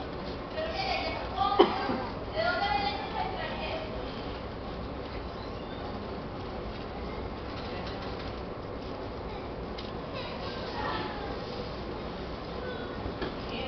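A woman sings out from a stage in a large echoing hall.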